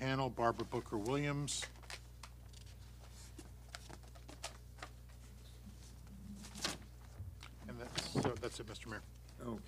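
Paper rustles close to a microphone.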